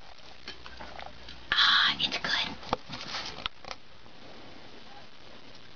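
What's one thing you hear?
A young woman sips a drink from a can.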